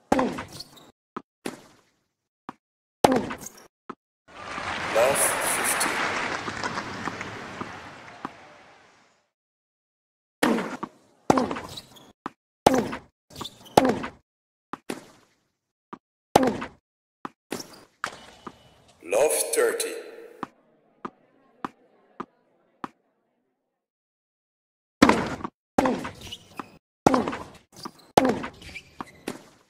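Tennis balls are struck sharply with rackets, back and forth.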